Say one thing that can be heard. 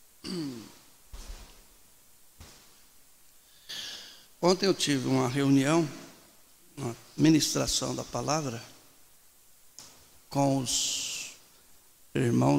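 A middle-aged man preaches with animation into a microphone, in pauses and bursts.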